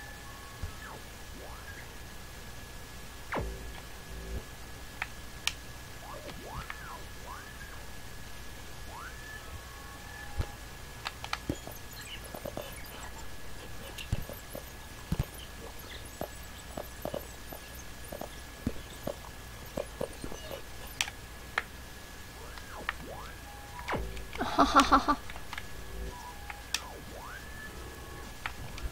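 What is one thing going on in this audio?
Game sound effects chime and click.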